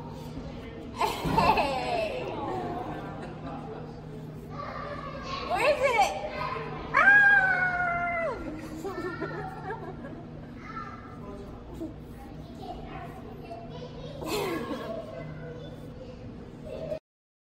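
A young woman talks playfully to a toddler in a high sing-song voice.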